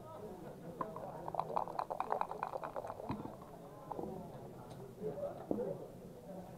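Dice rattle and tumble onto a board.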